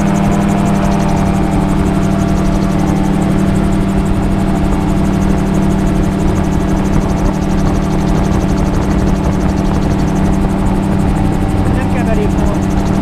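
Wind rushes past loudly in open air.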